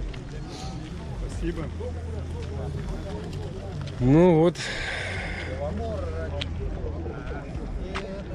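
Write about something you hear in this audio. Men talk nearby in an outdoor crowd.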